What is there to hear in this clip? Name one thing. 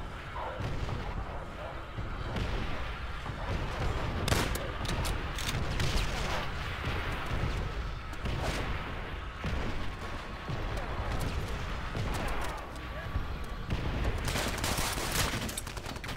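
Gunfire bursts out in rapid shots, echoing off hard walls.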